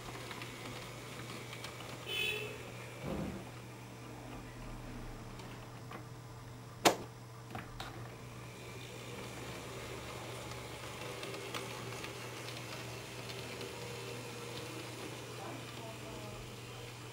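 A small model train motor hums and its wheels rattle softly on the track.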